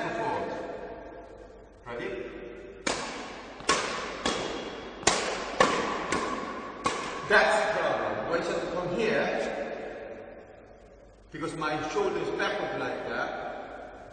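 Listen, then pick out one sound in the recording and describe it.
A man speaks calmly, explaining, in a large echoing hall.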